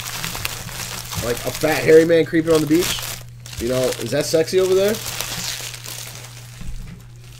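Plastic wrappers crinkle as hands tear open card packs.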